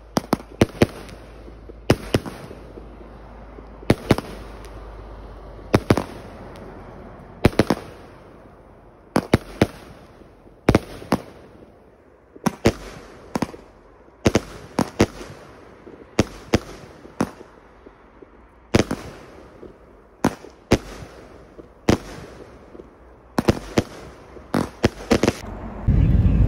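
Fireworks fizz and crackle as sparks shoot up.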